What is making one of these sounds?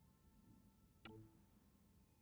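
A soft electronic click sounds as a menu selection changes.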